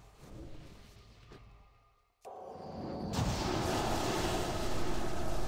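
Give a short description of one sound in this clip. Game spell effects crackle and whoosh in a battle.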